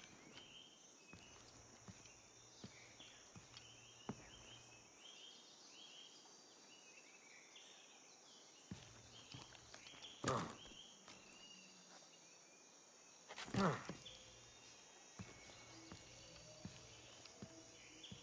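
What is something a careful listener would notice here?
Footsteps thud on wooden branches.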